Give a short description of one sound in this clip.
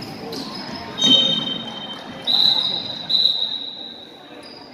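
A referee's whistle blows sharply several times.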